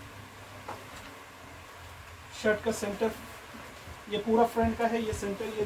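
Fabric rustles softly as cloth is unfolded and smoothed.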